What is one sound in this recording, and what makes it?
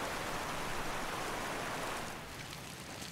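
Water pours steadily into a pool.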